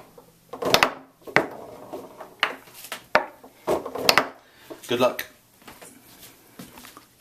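A plastic ball clacks sharply against the foosball figures and walls.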